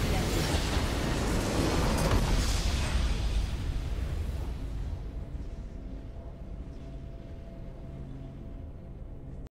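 Triumphant game music plays and slowly fades.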